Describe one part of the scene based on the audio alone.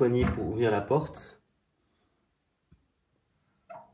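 The cast-iron door of a wood stove clicks open.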